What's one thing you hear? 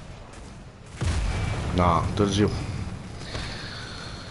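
A loud explosion booms, followed by a roar of fire.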